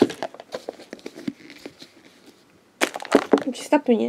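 Plastic packaging crinkles as a hand handles toys.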